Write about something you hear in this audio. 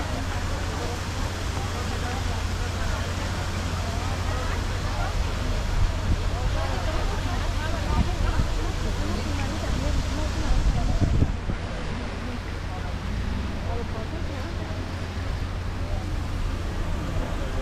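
Wind blows strongly outdoors.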